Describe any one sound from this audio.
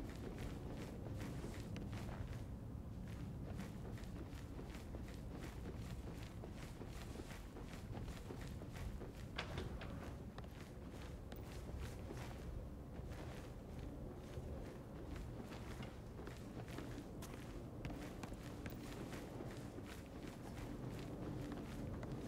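Footsteps patter quickly across a hard floor.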